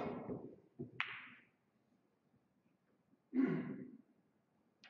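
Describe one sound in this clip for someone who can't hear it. Pool balls clack against each other and roll on the table.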